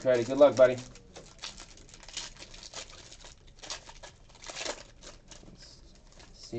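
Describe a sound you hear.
A foil wrapper crinkles and tears as it is pulled open by hand.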